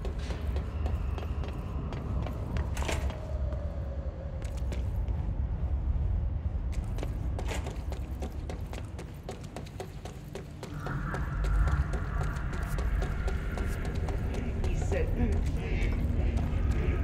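Footsteps clatter quickly on metal walkways.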